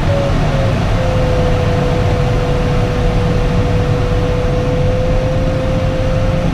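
A flight instrument holds a steady, unbroken tone.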